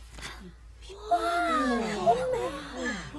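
A young man exclaims with animation.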